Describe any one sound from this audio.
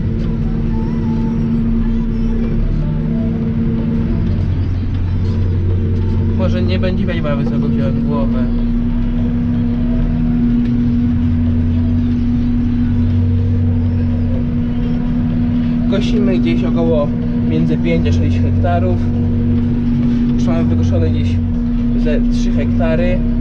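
A tractor engine drones steadily from inside the cab.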